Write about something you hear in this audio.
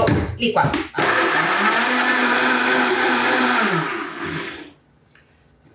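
A blender whirs loudly, then winds down.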